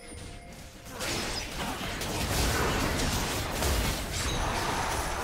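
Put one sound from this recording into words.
Magic spells crackle and whoosh in a clashing fight.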